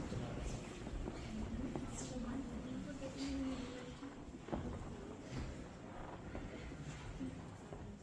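Several men and women talk quietly nearby in an echoing hall.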